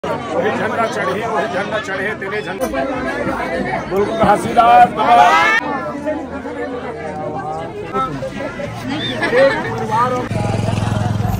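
A crowd of men and women talk over one another nearby.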